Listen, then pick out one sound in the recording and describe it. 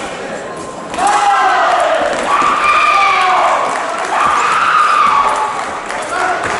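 A young man shouts loudly in a large echoing hall.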